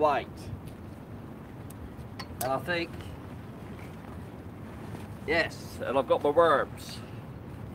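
A middle-aged man speaks calmly, close by, outdoors.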